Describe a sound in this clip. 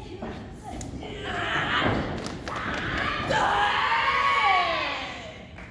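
A young woman shouts.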